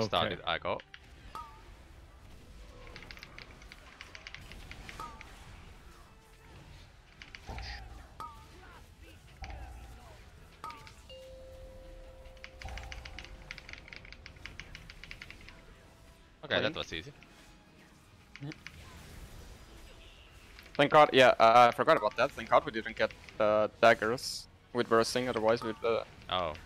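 Magic spells crackle and whoosh in a fantasy game battle.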